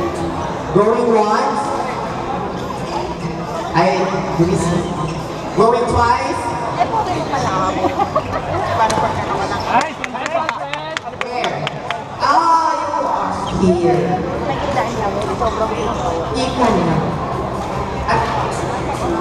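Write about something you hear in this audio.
Shuttlecocks are struck with rackets in a large echoing hall.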